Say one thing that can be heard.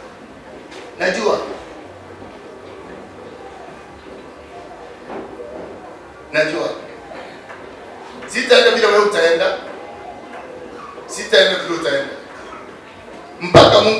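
A man speaks slowly and forcefully into a microphone, with long pauses.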